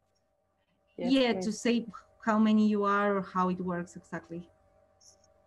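A third young woman speaks with animation over an online call.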